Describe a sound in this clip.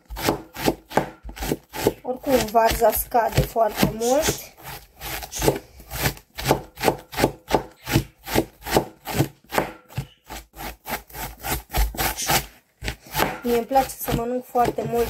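A knife chops rapidly through cabbage onto a cutting board.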